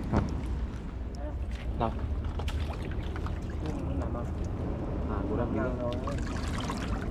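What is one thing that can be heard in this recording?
A young woman talks quietly nearby.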